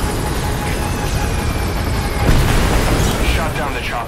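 Flames crackle from a burning wreck.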